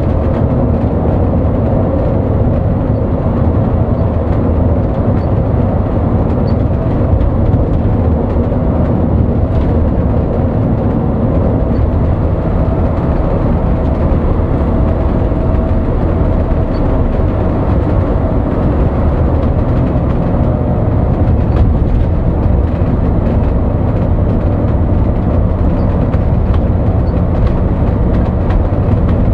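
Tyres roll on the road with a steady roar.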